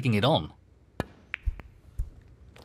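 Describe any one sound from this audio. A cue taps a snooker ball sharply.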